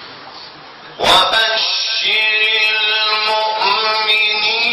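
A man chants melodically into a microphone, heard through a loudspeaker in an echoing room.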